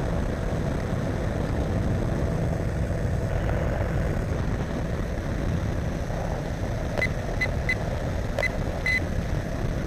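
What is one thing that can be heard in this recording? A small aircraft engine drones loudly and steadily close by.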